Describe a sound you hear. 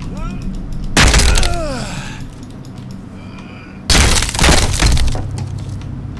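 A wooden door cracks and splinters under heavy axe blows.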